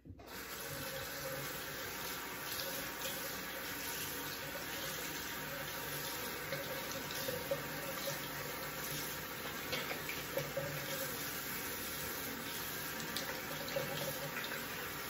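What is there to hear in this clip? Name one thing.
A razor scrapes across stubble with short rasping strokes.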